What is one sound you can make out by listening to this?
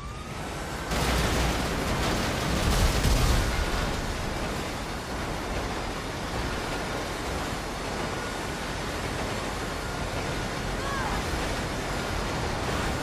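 A freight train rumbles past nearby.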